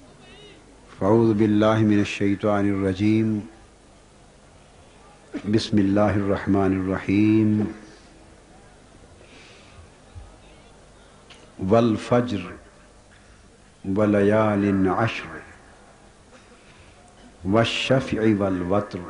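A man recites in a melodic chant through a microphone, in phrases separated by pauses.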